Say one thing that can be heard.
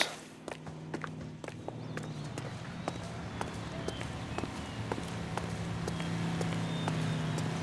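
Car engines hum as traffic passes on a nearby street.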